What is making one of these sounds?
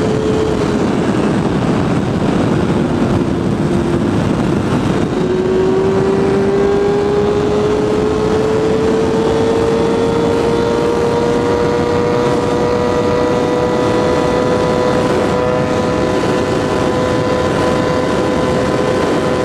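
A motorcycle engine drones loudly at high speed, its pitch dipping and then climbing steadily.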